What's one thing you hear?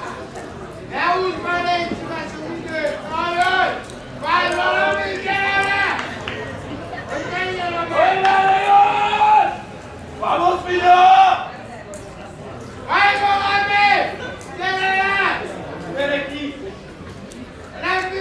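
A man talks loudly and with animation close by.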